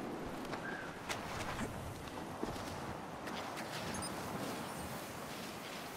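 Waves wash softly onto a beach.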